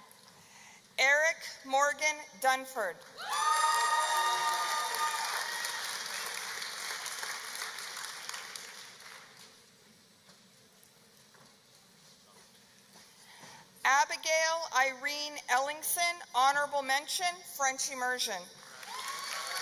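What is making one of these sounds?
A woman reads out names over a loudspeaker in a large echoing hall.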